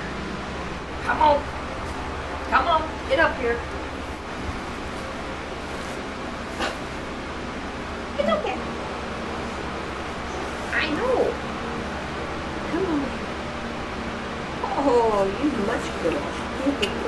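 A baby hippo squeals and grunts in short, rising cries.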